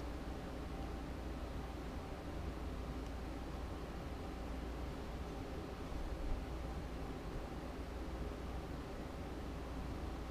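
Thread is pulled through cloth with a faint hiss.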